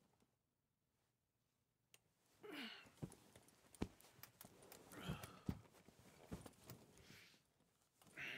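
Bedding and clothes rustle as a man sits up on a bed.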